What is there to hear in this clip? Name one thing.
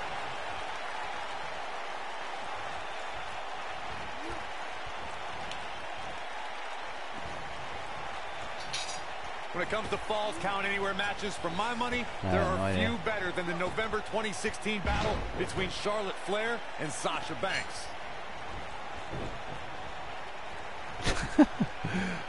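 A large crowd cheers and murmurs steadily in an arena.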